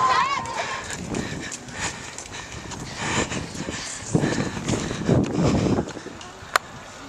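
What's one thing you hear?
Young girls talk and pant nearby.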